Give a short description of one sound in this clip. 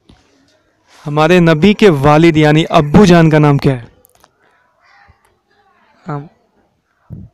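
A boy speaks into a microphone.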